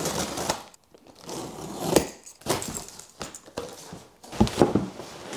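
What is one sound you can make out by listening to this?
Cardboard box flaps are pulled open and rustle.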